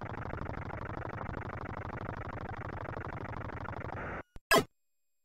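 A retro video game engine hum drones steadily, then cuts off.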